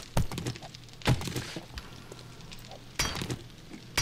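A pick strikes a metal barrel with sharp clanks.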